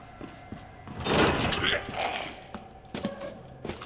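A zombie groans hoarsely.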